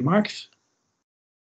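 A man speaks briefly through an online call.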